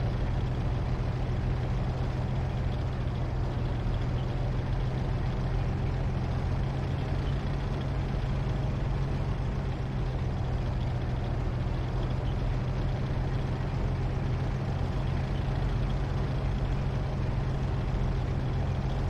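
A tank engine rumbles steadily as the tank drives.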